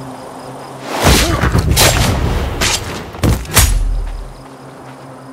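Heavy thuds and blows land in a brief close struggle.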